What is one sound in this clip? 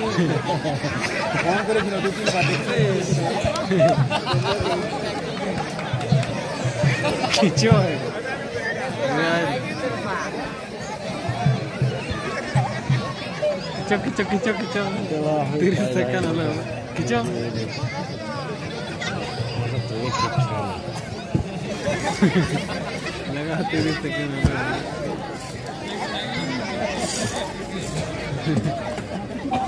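A large outdoor crowd of men, women and children chatters and calls out.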